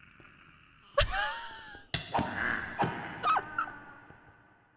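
Monsters grunt and cry out as they are hit.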